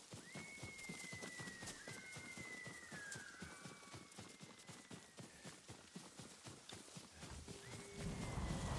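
Footsteps rustle quickly through grass.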